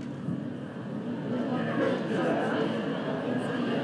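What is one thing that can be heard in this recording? A crowd of people chatter indistinctly in a large room.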